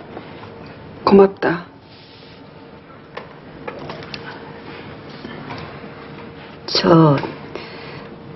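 A woman speaks briefly and quietly nearby.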